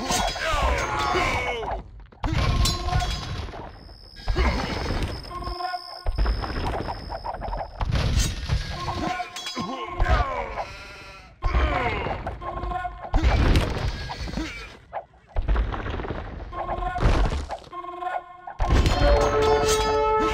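Swords clash and clang in a busy battle.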